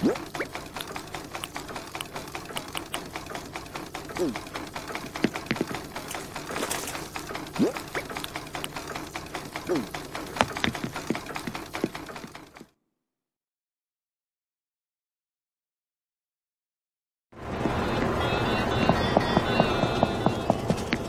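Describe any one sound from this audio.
Soft game music plays.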